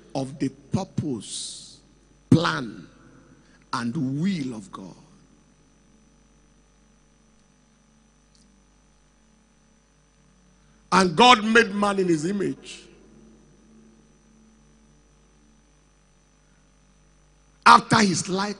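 A man preaches energetically into a microphone, in bursts with long pauses.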